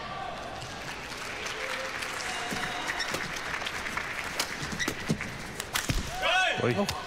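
Rackets strike a shuttlecock with sharp pops in a large hall.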